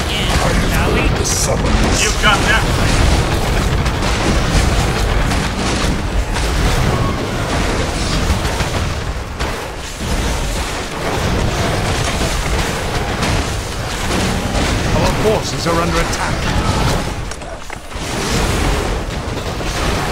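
Game battle sounds of clashing weapons and spell blasts play loudly and densely.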